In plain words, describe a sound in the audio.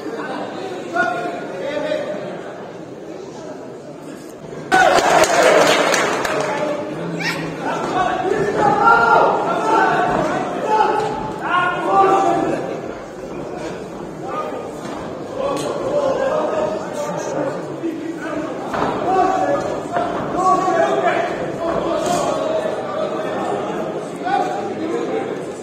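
Men shout instructions loudly from ringside.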